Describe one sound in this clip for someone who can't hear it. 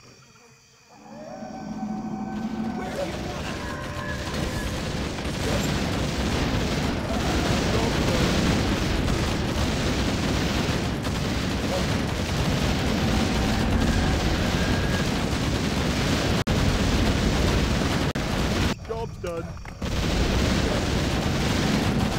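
Explosions and battle noises boom and crackle densely, growing loud.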